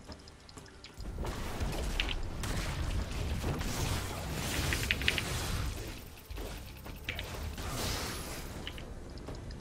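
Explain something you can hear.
Game spells blast and weapons clash in a fight.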